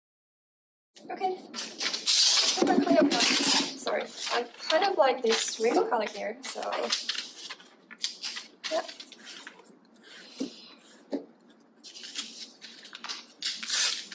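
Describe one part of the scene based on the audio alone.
Glossy magazine pages rustle and flap as they are shuffled by hand.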